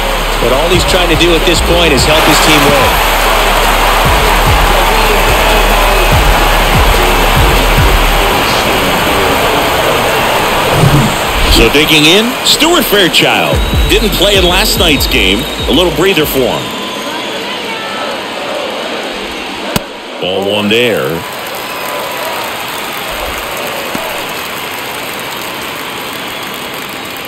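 A large crowd murmurs and cheers.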